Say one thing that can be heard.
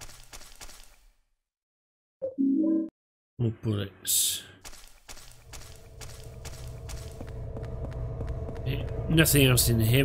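A young man talks into a microphone, close by.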